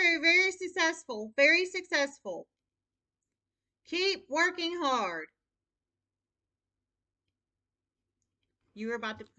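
A woman speaks calmly close by, in short bursts with pauses.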